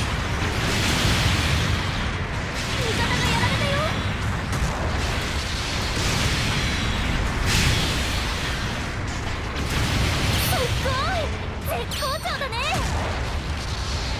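Heavy gunfire and explosions boom in bursts.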